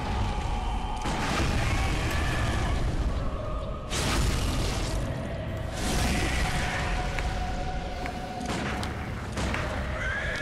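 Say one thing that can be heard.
A monstrous beast roars loudly.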